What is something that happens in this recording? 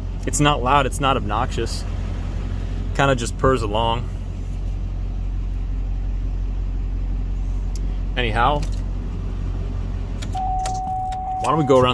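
A truck engine idles with a steady low hum, then shuts off.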